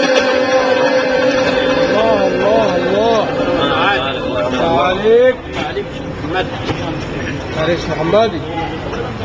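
A middle-aged man recites in a melodic, wavering chant through a microphone and loudspeakers.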